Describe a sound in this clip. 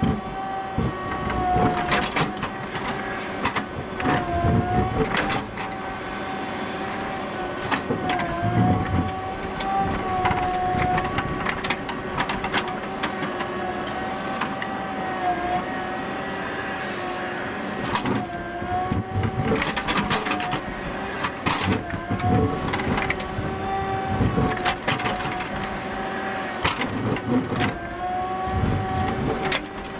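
A steel bucket scrapes and clanks against rocks and soil.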